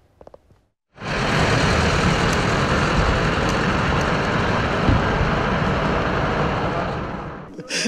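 Heavy trucks rumble along a road.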